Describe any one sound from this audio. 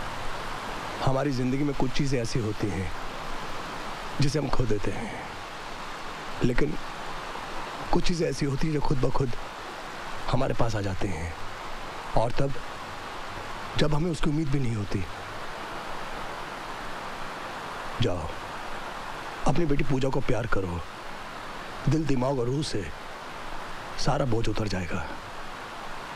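An older man speaks in a low, serious voice close by.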